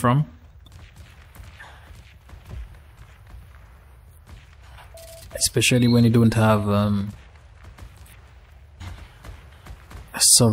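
Footsteps crunch through dry leaves and grass.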